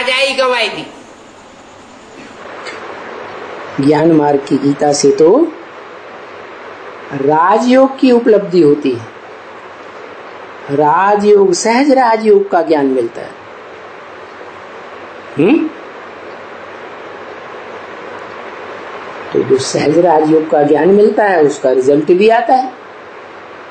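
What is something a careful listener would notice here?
An elderly man speaks slowly and calmly, with long pauses, close to a microphone.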